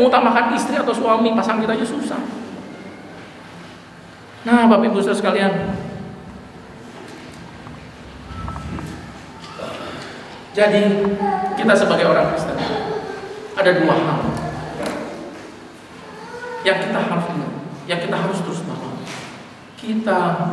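A middle-aged man speaks with animation through a microphone and loudspeakers in an echoing hall.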